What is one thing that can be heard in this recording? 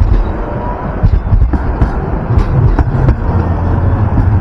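A tram rumbles past close by, its wheels clattering on the rails.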